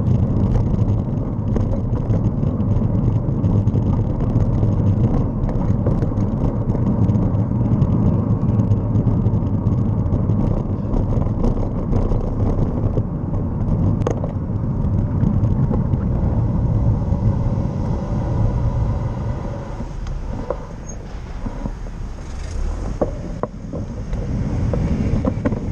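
Wind rumbles steadily past a moving bicycle.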